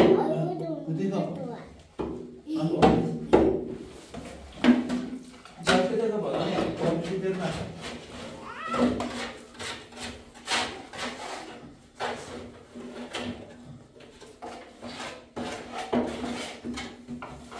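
A trowel scrapes wet plaster across a wall.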